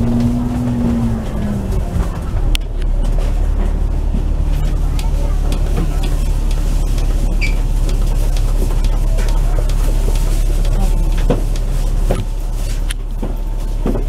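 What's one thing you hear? The bus body rattles and knocks over the road.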